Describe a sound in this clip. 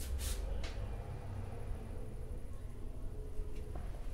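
A woman speaks quietly nearby.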